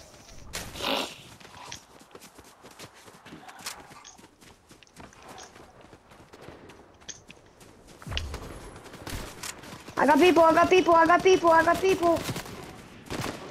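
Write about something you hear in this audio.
Footsteps patter quickly over dry grass.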